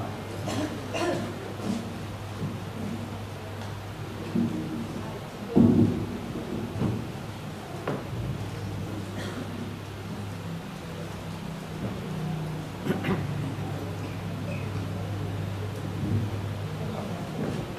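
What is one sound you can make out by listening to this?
A woman speaks into a microphone over a loudspeaker in an echoing hall.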